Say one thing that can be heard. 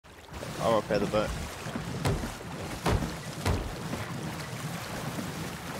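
Strong wind howls over open water.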